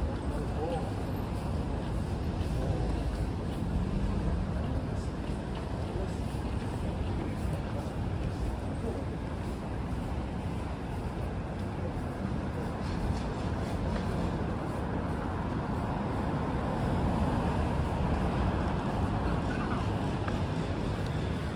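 City traffic rumbles steadily along a street outdoors.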